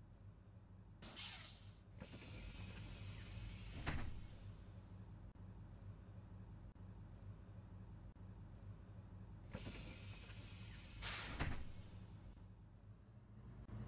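Bus doors hiss with a burst of air as they open and close.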